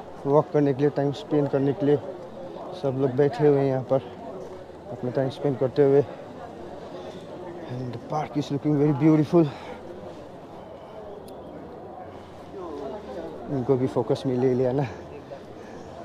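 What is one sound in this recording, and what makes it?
A man talks calmly and close to the microphone.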